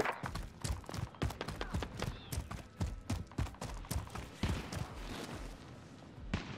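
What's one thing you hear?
Quick footsteps run over rough ground.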